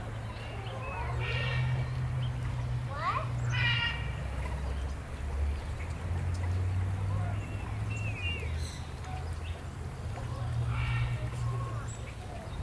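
Ducks quack now and then.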